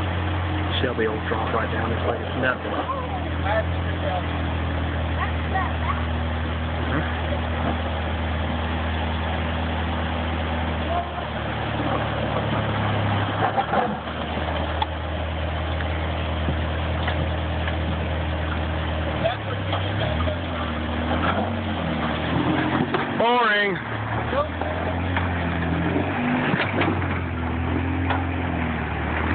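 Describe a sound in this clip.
A rock crawler buggy's engine rumbles and revs as it climbs over rocks.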